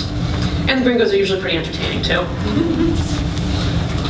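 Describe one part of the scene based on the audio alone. A woman speaks calmly into a microphone in a large room.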